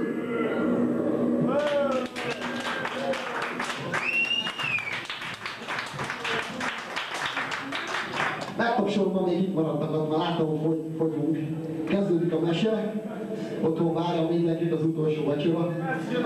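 A man sings loudly into a microphone over a band.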